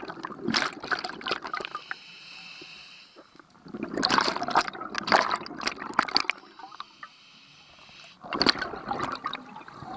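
Air bubbles gurgle and burble loudly underwater in repeated bursts.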